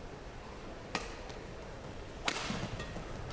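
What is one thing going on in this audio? A badminton racket strikes a shuttlecock.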